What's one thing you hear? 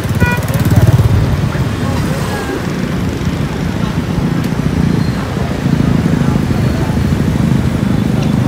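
A motorbike engine idles and rumbles close by.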